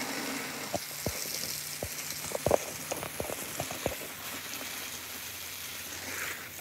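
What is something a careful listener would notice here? Water sprays from a hose and splashes onto leaves and soil.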